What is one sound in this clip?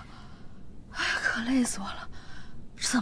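A young man mumbles wearily.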